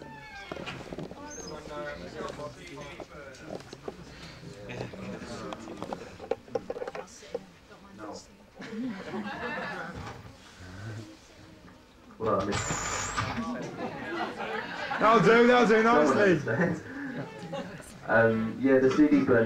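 An elderly man speaks into a microphone through a loudspeaker.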